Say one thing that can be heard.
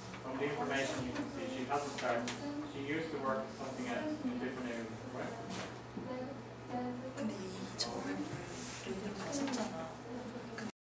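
A young woman speaks calmly nearby.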